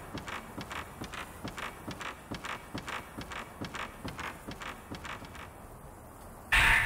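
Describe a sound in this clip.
Footsteps thud steadily on wooden boards.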